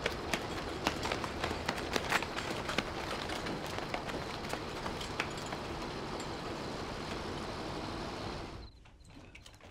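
Boots run and stamp on a wet road outdoors.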